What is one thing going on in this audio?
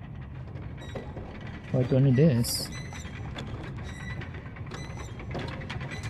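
A heavy cart scrapes and rumbles as it is pushed.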